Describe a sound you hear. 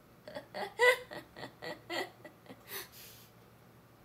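A young woman speaks brightly close by.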